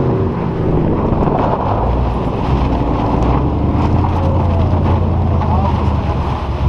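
Car tyres hiss and crunch over ice.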